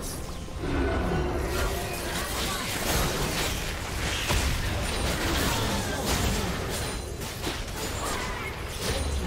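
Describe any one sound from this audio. Video game spells crackle and boom during a fast battle.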